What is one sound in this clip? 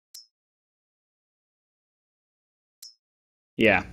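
A short, soft menu click sounds.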